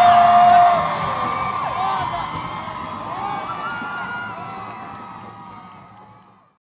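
A large crowd cheers and whistles loudly, then fades away.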